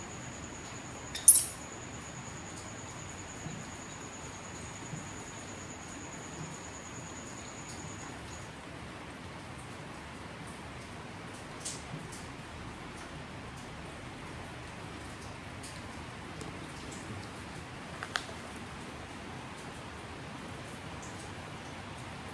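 A baby monkey squeaks faintly close by.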